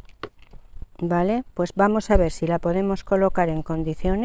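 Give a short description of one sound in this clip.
An older woman speaks calmly and clearly into a close microphone.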